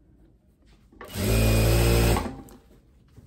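A sewing machine whirs steadily for a moment.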